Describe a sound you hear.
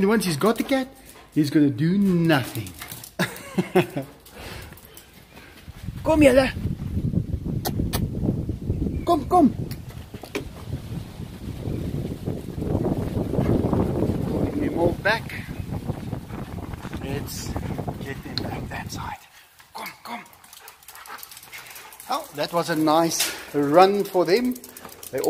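Several dogs bark and yelp excitedly nearby.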